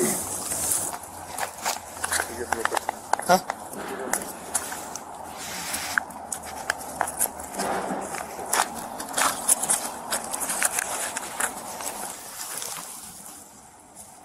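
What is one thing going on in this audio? Clothing rustles and brushes close by.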